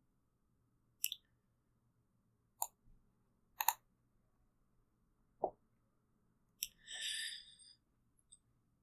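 Game cards make short, sharp snapping and shuffling sounds several times.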